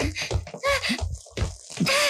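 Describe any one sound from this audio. A woman screams in fright.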